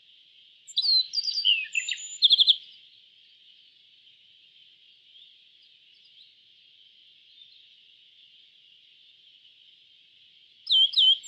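A small songbird sings a quick series of high chirps and trills.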